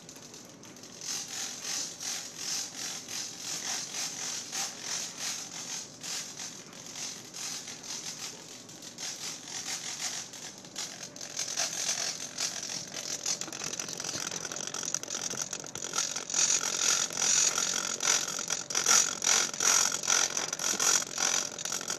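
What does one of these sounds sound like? A small servo motor whirs in short, quick bursts.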